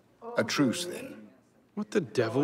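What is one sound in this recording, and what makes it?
A man speaks in a low, gruff voice.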